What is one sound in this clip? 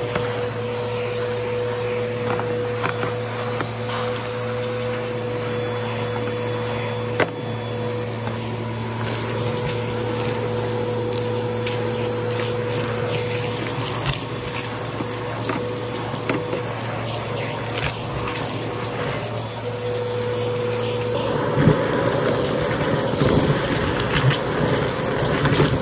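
Bits of debris rattle and click as they are sucked up through a hose.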